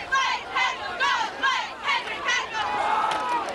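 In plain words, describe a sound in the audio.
A man shouts a rhythmic count outdoors.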